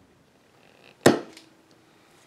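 A chisel chops down through wood veneer with a sharp knock.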